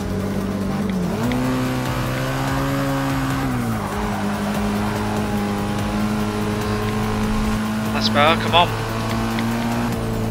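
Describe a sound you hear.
A racing car engine roars steadily, rising in pitch with each gear and dropping at a gear change.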